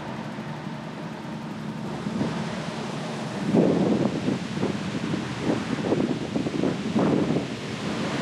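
Bicycle tyres roll and rumble over paving stones.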